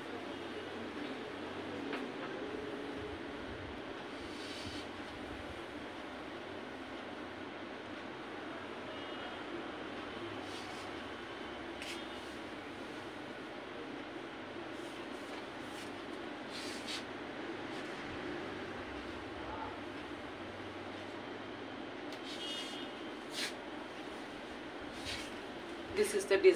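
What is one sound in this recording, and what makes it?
Cloth rustles as it is handled and draped.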